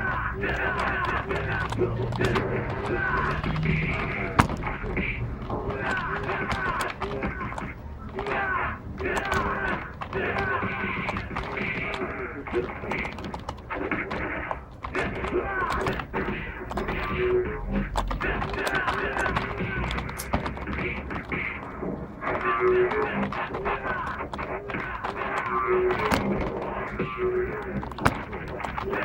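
Music from a fighting video game plays through a television speaker.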